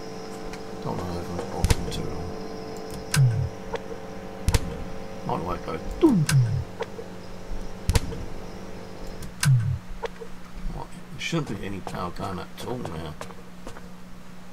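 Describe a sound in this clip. A young man speaks briefly and quietly into a microphone.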